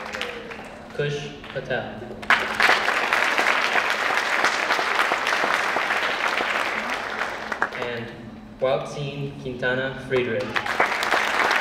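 A woman announces into a microphone over loudspeakers in a large echoing hall.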